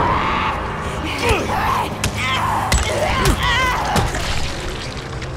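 A creature groans and snarls close by.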